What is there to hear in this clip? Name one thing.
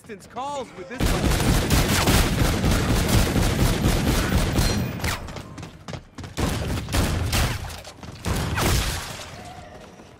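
Automatic gunfire rattles in rapid bursts in a video game.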